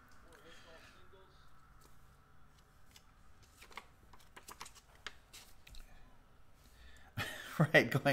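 Thin cards click and tap as they are handled.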